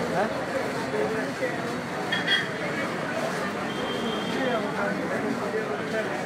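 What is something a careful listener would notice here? A crowd of men and women chatter close by.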